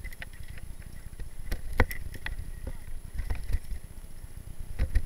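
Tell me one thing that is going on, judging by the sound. Mountain bike tyres rattle and bump over a rough dirt trail.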